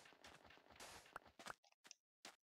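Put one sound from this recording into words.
Sand crumbles as a block is dug out.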